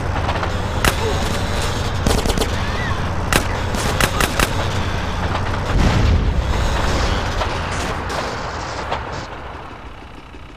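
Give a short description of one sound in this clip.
A train rumbles past loudly.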